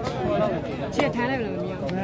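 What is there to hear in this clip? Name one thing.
A ball is kicked with a sharp thump.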